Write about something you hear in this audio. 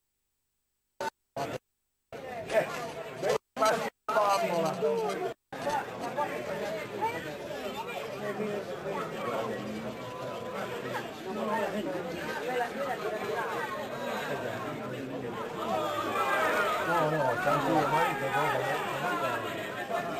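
A small crowd of spectators chatters.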